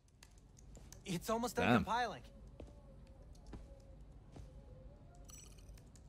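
Fingers tap on a keyboard.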